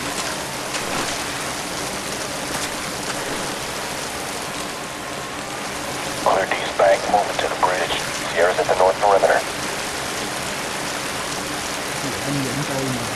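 Rain falls steadily all around.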